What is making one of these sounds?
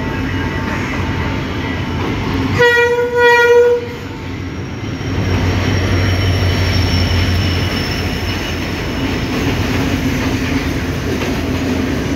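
A diesel locomotive rumbles loudly as it passes close by.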